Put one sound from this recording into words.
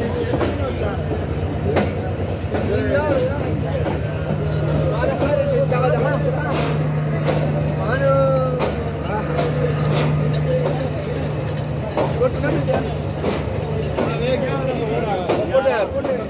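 A train engine idles with a steady low hum.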